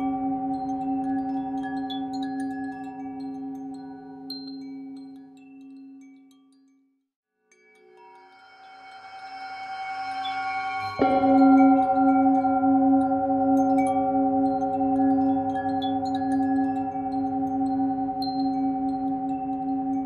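A metal singing bowl hums with a steady ringing tone that fades away and then swells back up.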